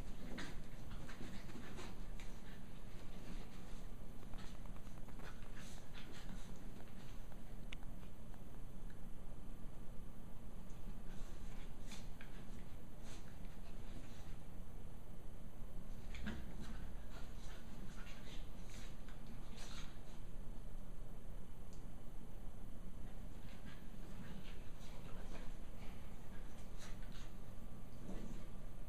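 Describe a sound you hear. Two puppies growl and yip softly while playing.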